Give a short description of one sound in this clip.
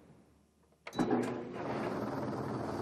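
A dryer starts up and hums steadily.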